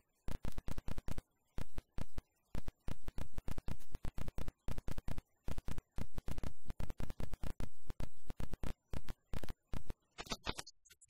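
A few people clap.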